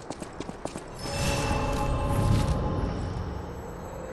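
A magical chime swells and shimmers.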